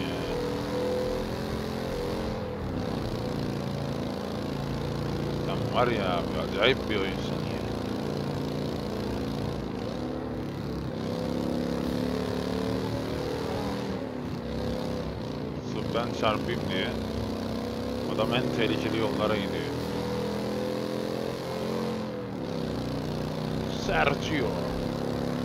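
A motorcycle engine hums steadily and changes pitch as it speeds up and slows down.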